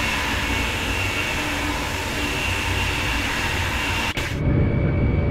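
A high-speed train rushes past outside with a loud whoosh.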